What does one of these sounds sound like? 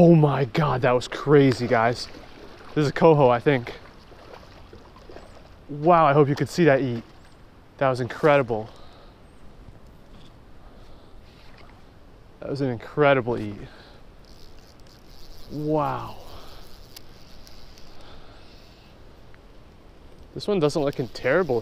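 A shallow stream flows and ripples gently.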